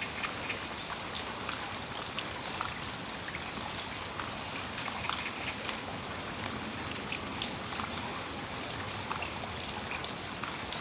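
Steady rain falls outdoors, pattering and dripping from a roof.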